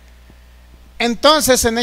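A man speaks loudly with animation into a microphone.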